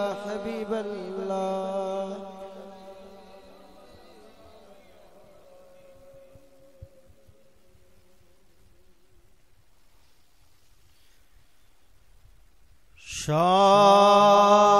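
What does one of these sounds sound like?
A man chants long, drawn-out notes into a microphone, heard through a loudspeaker with echo.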